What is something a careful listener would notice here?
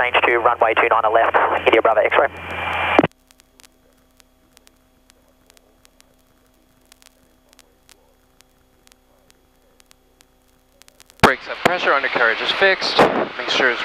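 A young man speaks calmly over a headset radio.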